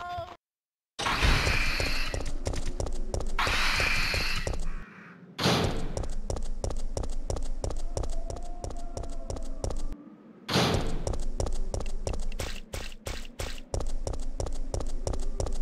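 Footsteps run quickly and steadily on a hard floor.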